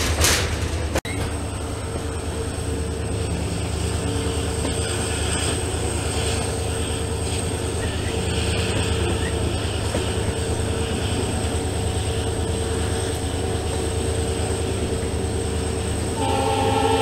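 A diesel locomotive engine rumbles steadily as the train speeds up.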